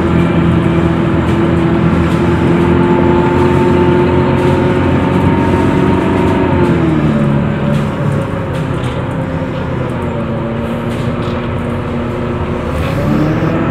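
A bus engine hums steadily and drops in pitch as the bus slows.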